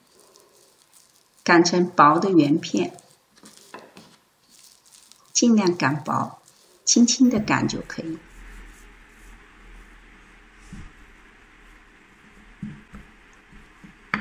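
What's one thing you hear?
A wooden rolling pin rolls over dough on a wooden board.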